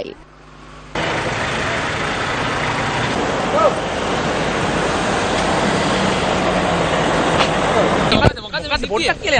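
Car engines rumble and hiss as vehicles drive past.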